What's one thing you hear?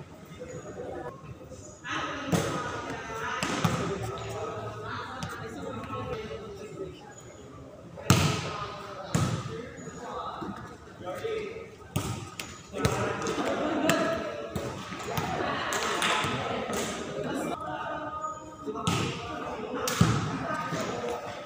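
Young men and women shout and call out across the court.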